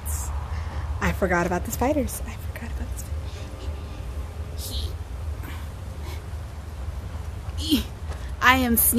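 A woman exclaims and speaks excitedly, close to a microphone.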